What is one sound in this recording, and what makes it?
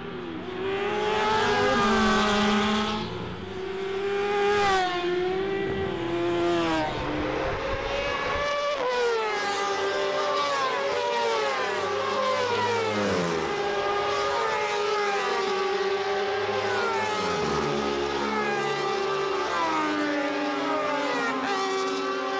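Racing motorcycle engines scream past at high speed, rising and falling in pitch as riders change gear.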